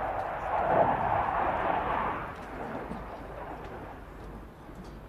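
A jet plane roars overhead and fades into the distance.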